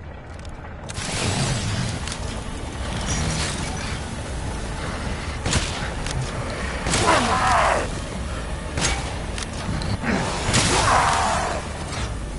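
A shotgun fires loud blasts in a room.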